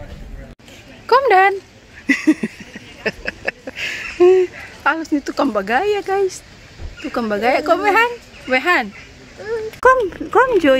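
A little girl talks close by in a high, lively voice.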